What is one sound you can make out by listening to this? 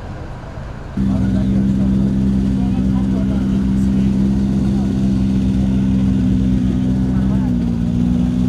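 A car engine idles loudly and steadily close by.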